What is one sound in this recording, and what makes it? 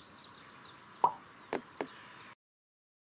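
A game tile clicks softly into place.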